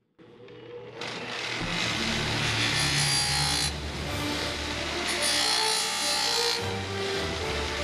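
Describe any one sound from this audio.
A bench grinder grinds against sheet metal with a harsh hiss.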